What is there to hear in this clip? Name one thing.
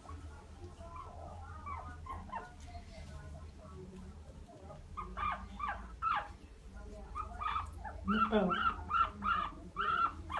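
A guinea pig squeaks in short high calls that grow louder and more frequent.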